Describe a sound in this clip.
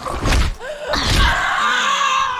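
A blade strikes flesh with heavy, wet thuds.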